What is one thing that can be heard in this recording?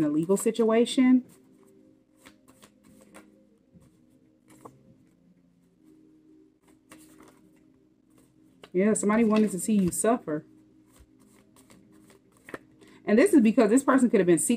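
Hands shuffle a deck of cards.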